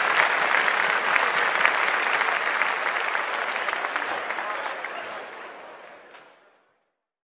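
A crowd cheers loudly in a large hall, fading away.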